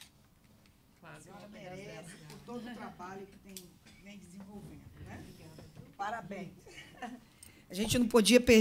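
Two women chat and laugh softly nearby.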